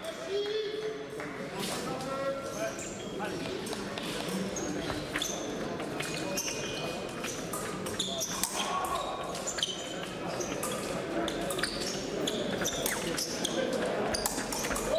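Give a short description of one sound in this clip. Shoes squeak sharply on a hard floor.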